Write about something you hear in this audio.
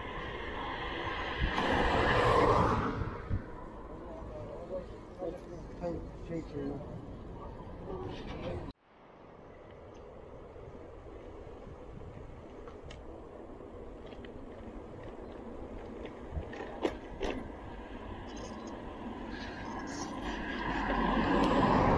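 Wind rushes past outdoors as a bicycle rides along.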